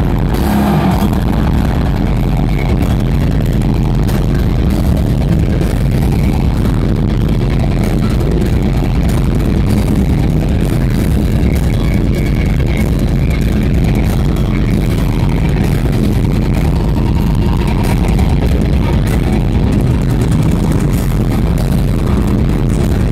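An electric bass rumbles heavily through loudspeakers.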